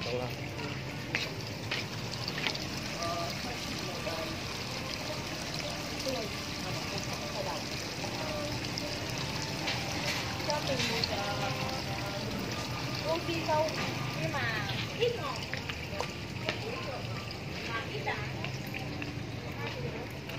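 Water splashes and trickles steadily into a pond.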